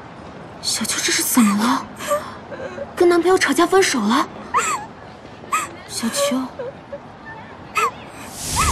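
A young woman speaks anxiously, close by.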